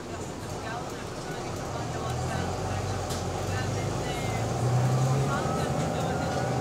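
The bus interior rattles and creaks as it moves.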